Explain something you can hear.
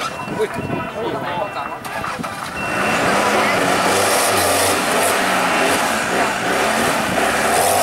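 Tyres spin and churn through mud.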